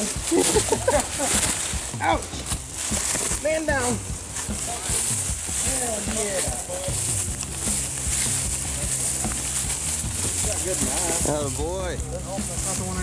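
Men talk to each other outdoors at night.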